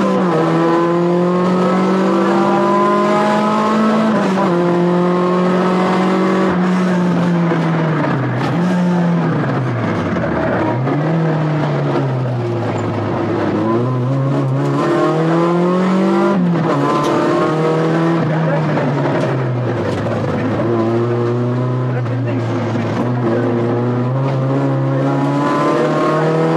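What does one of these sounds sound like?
A rally car engine revs at full throttle through the gears, heard from inside the cabin.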